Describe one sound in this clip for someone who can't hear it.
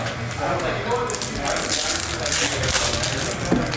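A plastic card wrapper crinkles and rustles in hands.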